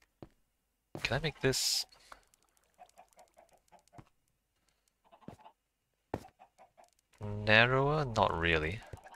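A young man speaks with animation close to a headset microphone.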